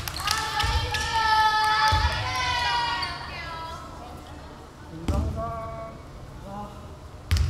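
Sneakers squeak sharply on a wooden court floor in an echoing hall.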